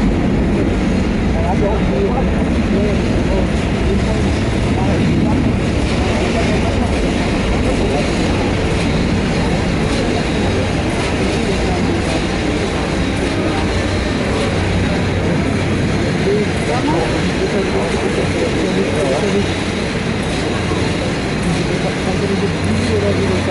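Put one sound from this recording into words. Jet engines roar loudly as an airliner takes off and climbs away.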